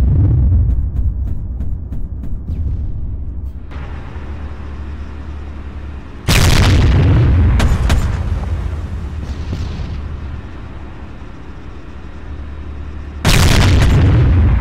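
Tank engines rumble steadily and low.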